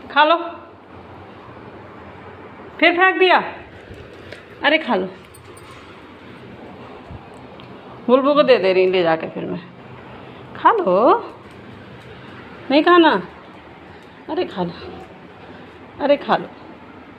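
A dog whines and yelps in short, high-pitched bursts.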